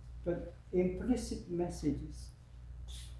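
A middle-aged man speaks briefly.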